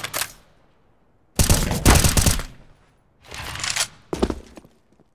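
Rifle shots fire in short loud bursts.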